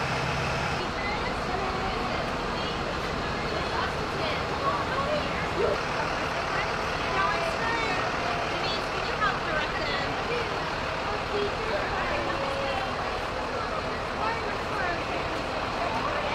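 Children and women chatter nearby outdoors.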